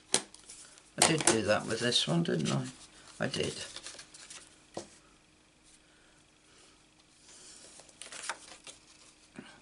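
Sheets of card rustle and slide across a table.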